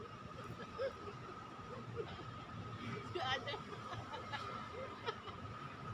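A second young woman laughs softly nearby.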